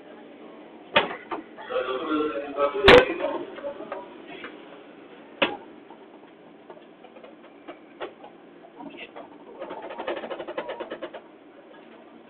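Wheels clatter and squeal on the rails.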